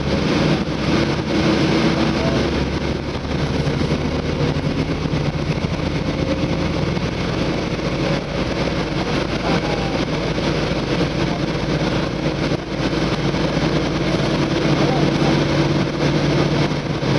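A vehicle's engine hums steadily as it drives along.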